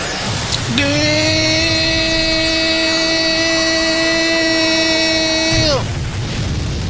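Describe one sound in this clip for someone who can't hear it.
A bright magical energy beam hums with a steady ringing tone.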